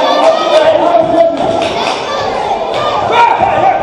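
A body slams onto a wrestling ring mat with a thud.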